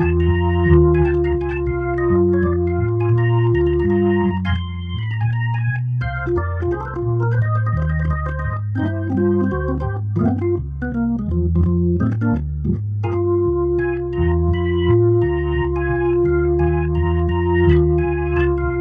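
An electric organ plays a lively tune with chords and a walking bass line.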